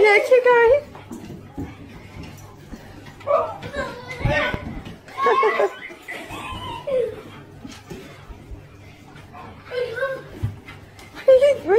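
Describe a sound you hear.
A dog growls while tugging on a toy.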